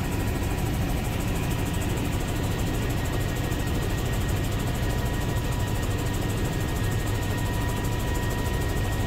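A helicopter's engine and rotor roar steadily from inside the cabin.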